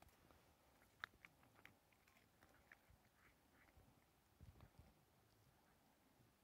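A fox chews food with soft clicking sounds.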